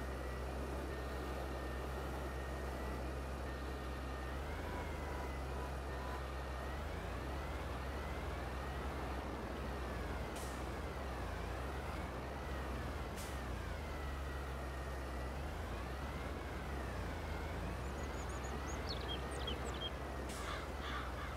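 A tractor engine rumbles steadily, its pitch rising and falling as it revs.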